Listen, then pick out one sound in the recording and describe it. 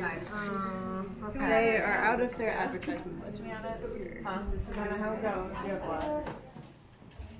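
A young woman speaks clearly and close by.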